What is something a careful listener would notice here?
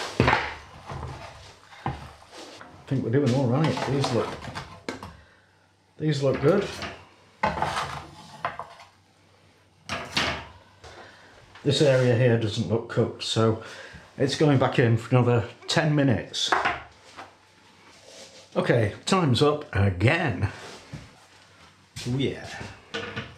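An elderly man talks calmly and warmly, close to a microphone.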